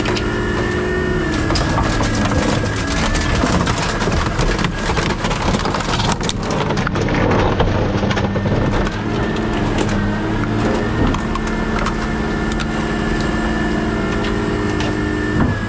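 Scrap metal crunches and scrapes as it is crushed.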